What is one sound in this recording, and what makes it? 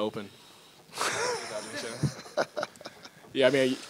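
An older man laughs nearby.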